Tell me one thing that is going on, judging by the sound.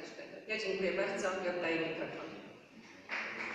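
A middle-aged woman speaks through a microphone in an echoing hall.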